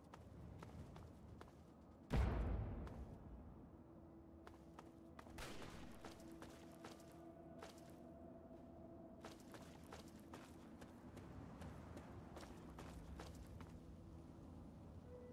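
Footsteps crunch over gravel and debris.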